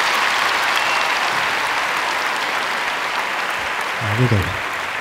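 A large audience applauds and cheers in a big echoing hall.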